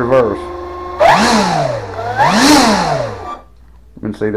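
A small electric motor whines, its pitch rising and falling as a propeller spins up and slows down.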